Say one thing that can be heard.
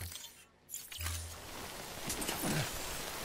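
Footsteps crunch on grass outdoors.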